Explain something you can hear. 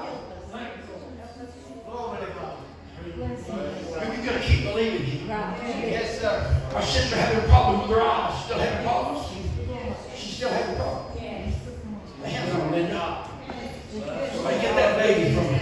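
An elderly man speaks with animation through a microphone and loudspeakers in an echoing room.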